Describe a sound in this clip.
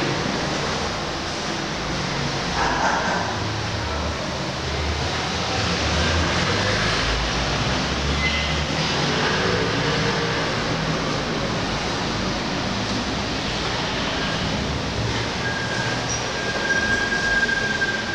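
Street traffic hums outside through a window.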